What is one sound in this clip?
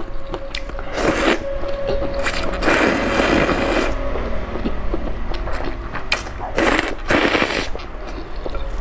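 A young woman slurps noodles loudly up close.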